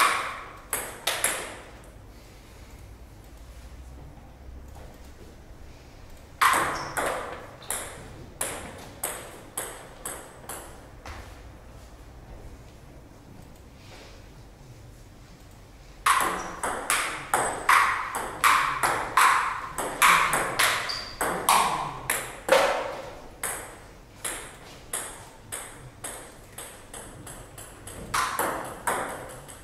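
A ping pong ball clicks back and forth off paddles and a table in quick rallies.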